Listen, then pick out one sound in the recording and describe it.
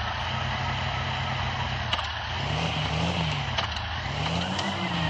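A car engine idles with a low hum and rises and falls in pitch.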